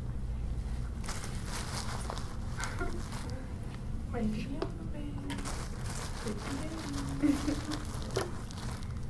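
A plastic sheet rustles and crinkles.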